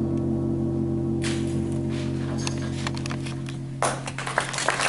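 A concert band holds a final chord, which then fades.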